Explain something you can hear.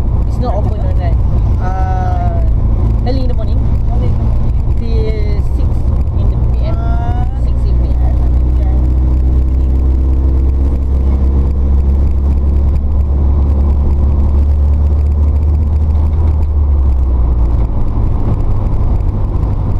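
A car engine hums low and steady from inside the cabin.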